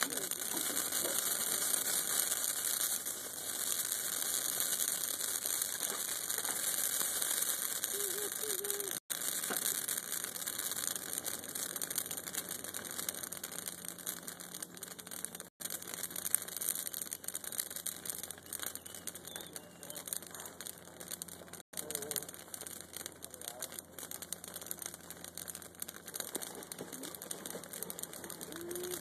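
A fire crackles and pops outdoors.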